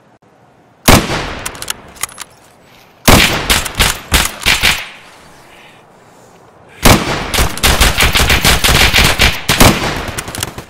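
Rifle shots ring out in loud bursts, echoing through woods.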